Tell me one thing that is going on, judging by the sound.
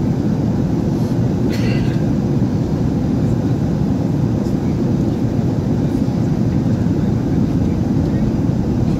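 A plane's engines roar steadily in the cabin.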